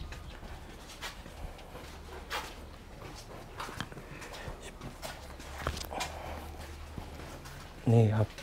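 Footsteps scuff along a narrow passage.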